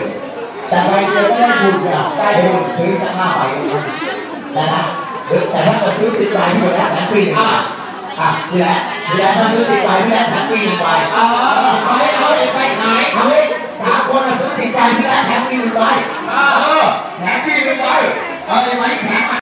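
A crowd of men and women talk all around, close by.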